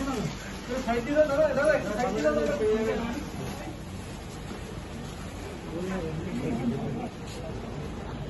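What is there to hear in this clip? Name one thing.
Men talk briefly among themselves nearby.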